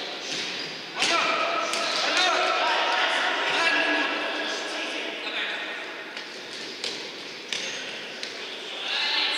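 A ball thuds as players kick it, echoing in a large hall.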